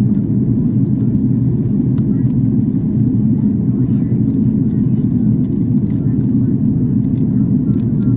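Jet engines roar with a steady, deep rumble inside an airliner cabin in flight.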